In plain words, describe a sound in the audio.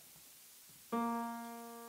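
A tuba plays a low, steady note.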